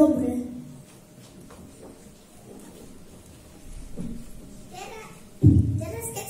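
A young child speaks loudly through a microphone in a large echoing hall.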